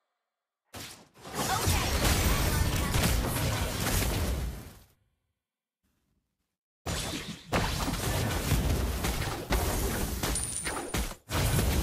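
Fiery blasts and clashing effects boom during a fight in a game.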